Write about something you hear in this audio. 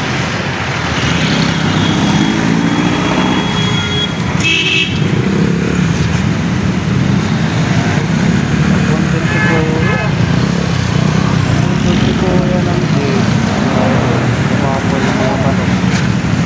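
Traffic passes on a wet road.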